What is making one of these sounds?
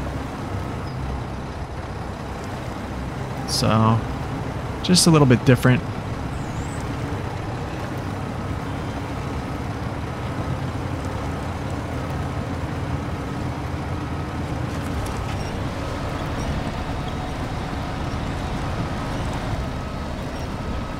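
A heavy truck engine rumbles and strains through deep mud.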